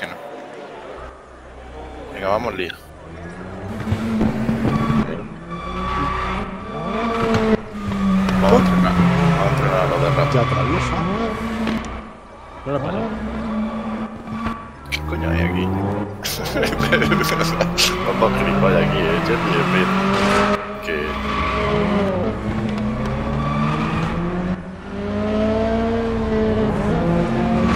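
Racing car engines roar and rev as the cars pass close by.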